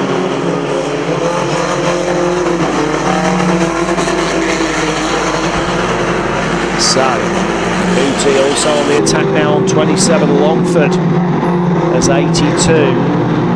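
Car engines roar and rev loudly nearby.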